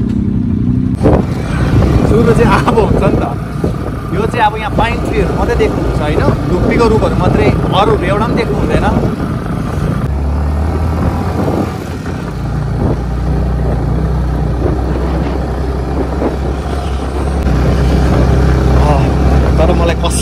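A motorcycle engine rumbles steadily as the bike rides along.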